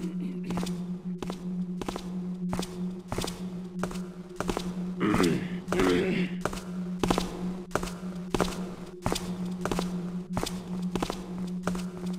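Footsteps thud at a steady pace on stone.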